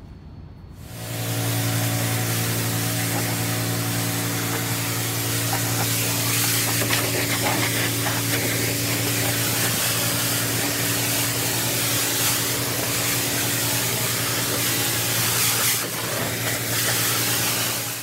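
A high-pressure water jet hisses against a metal surface.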